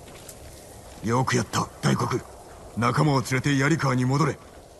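A man speaks calmly and firmly.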